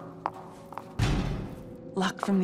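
A door swings open with a thud.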